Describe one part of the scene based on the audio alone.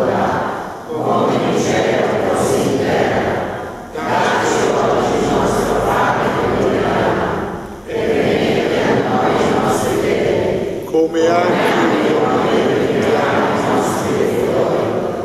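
A congregation sings together.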